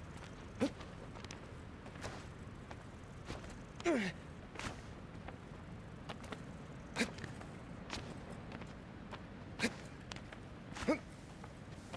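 Hands grip and knock against stone in short, sharp taps.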